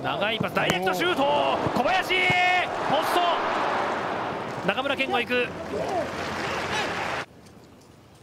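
A large stadium crowd roars as an attack nears the goal.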